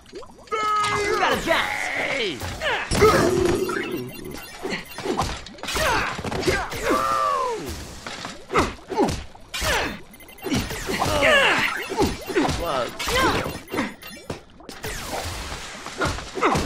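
Zapping energy shots crackle and fizz.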